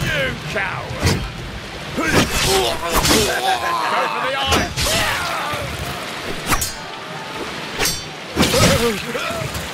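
Swords clash and ring in sharp, repeated strikes.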